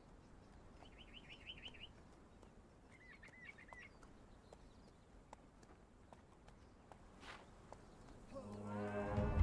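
Footsteps pad softly on sand.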